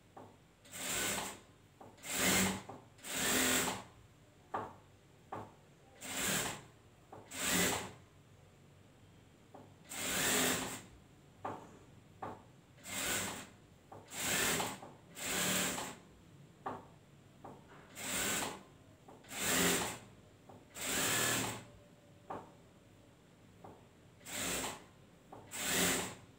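A sewing machine runs in short rattling bursts with pauses between them.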